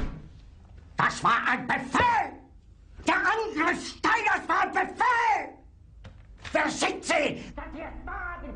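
An older man shouts angrily and rants.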